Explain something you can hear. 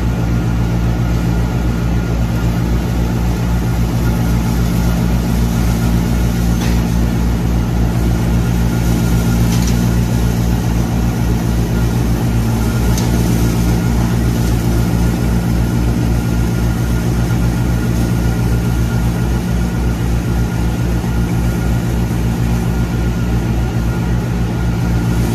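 Straw hisses as it is blown through the air.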